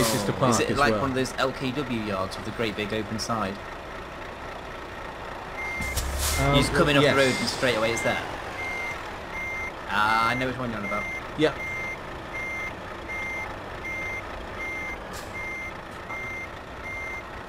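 A truck engine idles low as it backs up.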